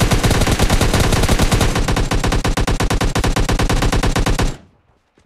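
A rifle fires in rapid, steady automatic bursts, then stops abruptly.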